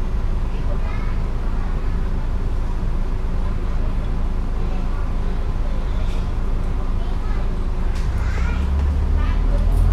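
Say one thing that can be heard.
A diesel double-decker bus engine hums, heard from the upper deck.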